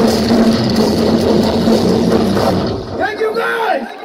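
A rock band plays loud, heavy music through large loudspeakers.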